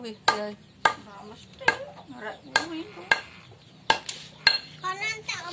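A wooden pestle pounds sharply on a stone slab.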